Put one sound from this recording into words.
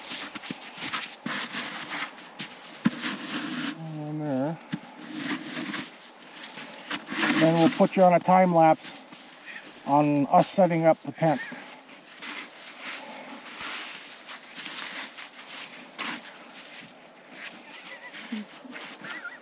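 A shovel scrapes and crunches through snow.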